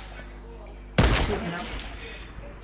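A rifle fires a single loud shot with a short echo.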